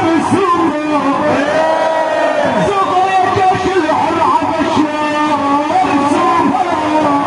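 A large crowd of men chants loudly in unison outdoors.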